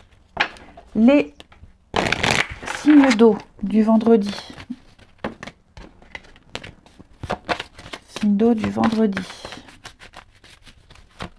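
Playing cards rustle and flick as a hand handles them.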